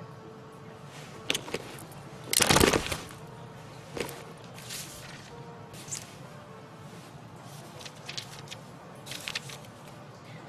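Paper rustles and crinkles as pages are handled.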